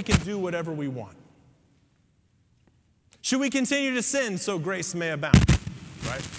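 A man speaks calmly through a microphone in a large echoing room.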